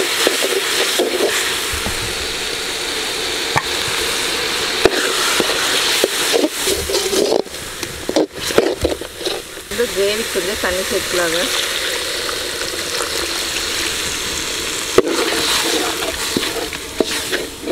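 A metal ladle scrapes and stirs inside a metal pot.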